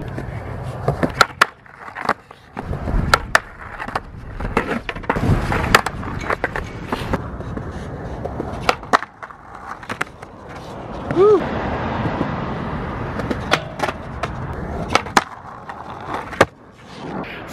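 Skateboard wheels roll and grind along a concrete ledge.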